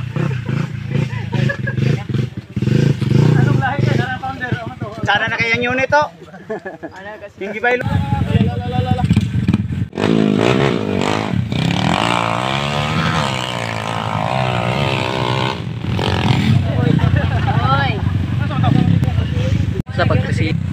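Dirt bike engines rev loudly nearby.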